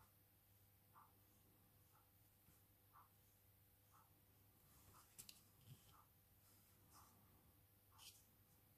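A paintbrush strokes softly across paper.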